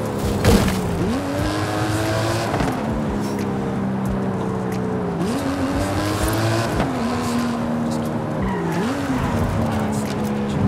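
A sports car engine roars, revving up and down as gears shift.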